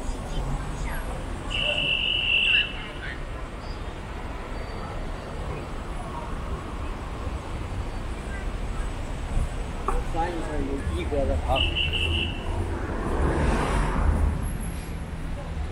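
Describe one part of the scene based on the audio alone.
Cars drive past on the street.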